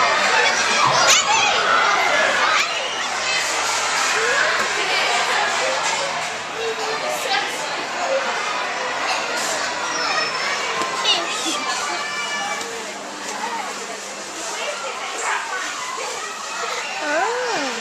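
A toddler babbles close by.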